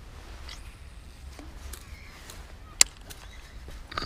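A fishing reel clicks and whirs as its handle is turned.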